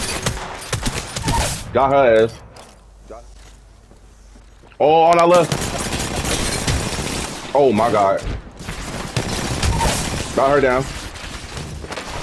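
Gunfire rattles in rapid, sharp bursts.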